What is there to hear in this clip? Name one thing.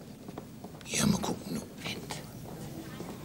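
An older man speaks quietly nearby.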